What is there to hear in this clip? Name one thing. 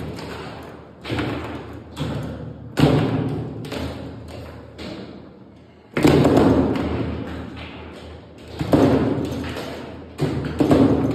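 A plastic ball bangs sharply against the sides of a foosball table.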